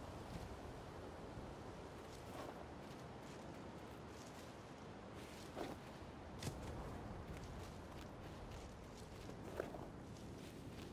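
Small footsteps crunch on leaves and dirt.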